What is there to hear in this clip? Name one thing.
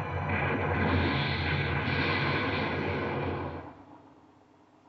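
A crackling energy blast roars loudly, then dies away.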